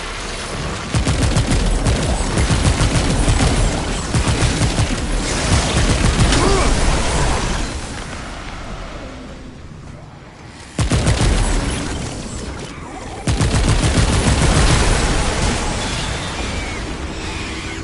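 A rapid-fire energy gun fires bursts of shots.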